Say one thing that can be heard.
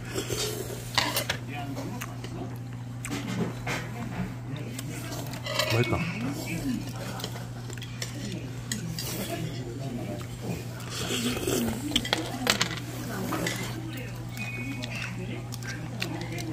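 Metal utensils clink against a metal pot and dishes.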